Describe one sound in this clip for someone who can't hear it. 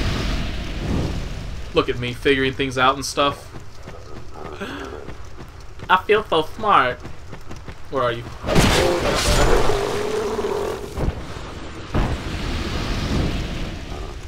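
A fire whooshes as a brazier is lit.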